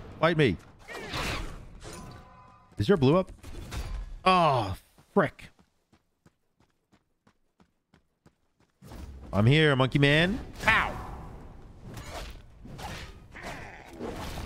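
A magic blast bursts with a fiery whoosh.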